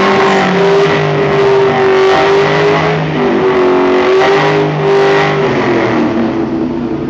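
A car engine revs hard and loud, rising and falling in bursts.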